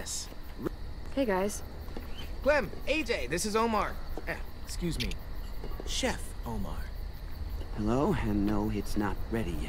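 A young man speaks with animation, close up.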